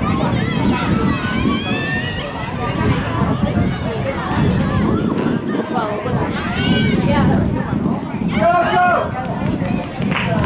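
Spectators nearby shout and cheer loudly outdoors.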